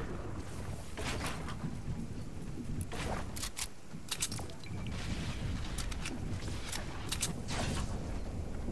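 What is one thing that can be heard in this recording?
Short electronic menu clicks chime one after another.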